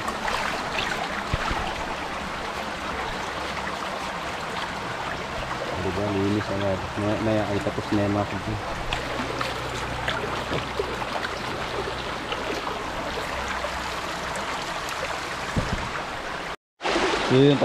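A shallow stream rushes and splashes over stones.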